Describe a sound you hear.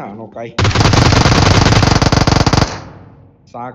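A rifle fires rapid bursts of gunshots.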